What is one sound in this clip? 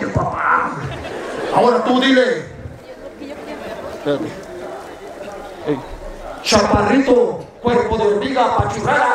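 A young man speaks with animation into a microphone, heard through a loudspeaker outdoors.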